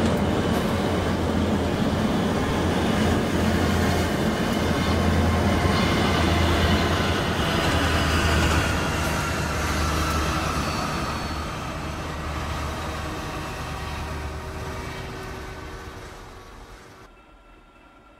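A truck engine rumbles low and steady, then cuts out.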